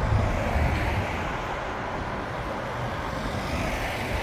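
A van passes close by with an engine hum.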